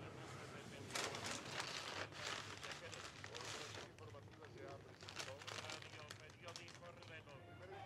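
Paper crinkles and rustles as a bag is opened.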